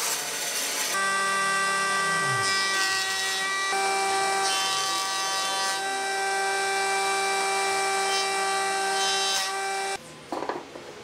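A wood planer roars steadily as a board feeds through.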